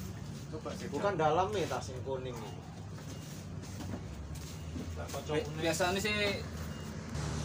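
A young man speaks nearby with animation.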